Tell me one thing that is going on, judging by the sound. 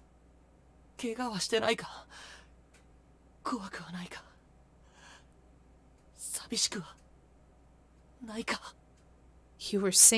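A young woman reads out lines with animation, close to a microphone.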